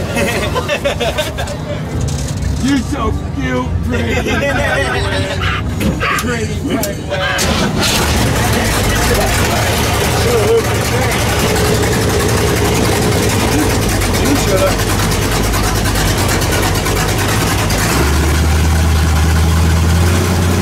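An elderly man talks over the engine.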